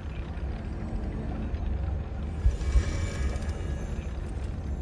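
A magical shimmering sound rings out.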